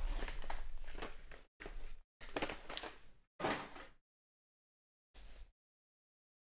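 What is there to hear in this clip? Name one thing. A foil wrapper crinkles as hands tear it open.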